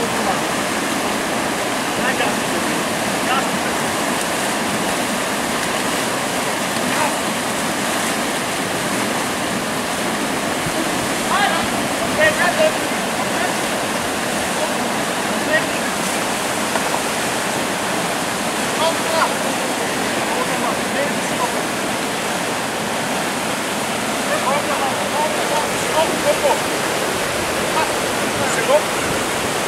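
Paddles splash and slap against the water.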